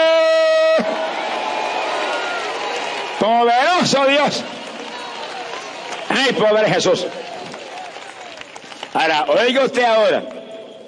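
A large crowd cheers and murmurs in an open stadium.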